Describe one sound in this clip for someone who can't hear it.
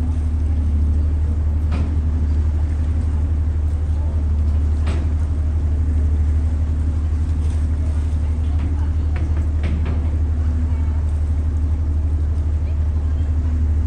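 A ship's engine rumbles low and steady close by.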